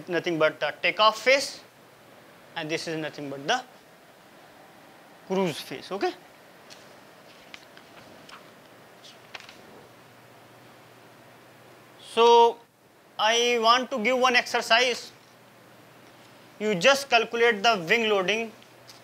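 A young man speaks calmly in a lecturing tone, with pauses between phrases.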